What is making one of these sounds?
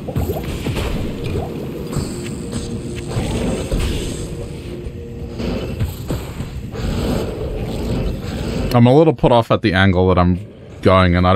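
Fires crackle and roar.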